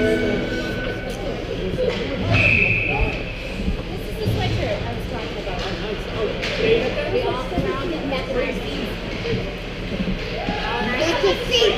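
Ice skates scrape and hiss across the ice in a large echoing rink.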